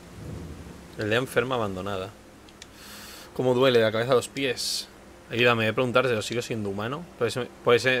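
A man speaks through a close microphone.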